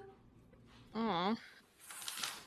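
A young woman squeals in a high, wavering voice.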